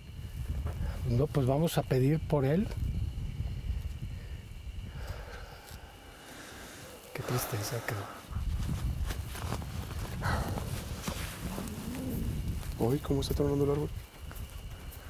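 A man speaks in a low voice nearby.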